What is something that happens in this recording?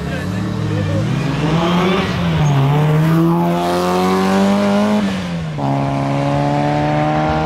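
A car engine revs hard and shifts up through the gears as the car races past outdoors.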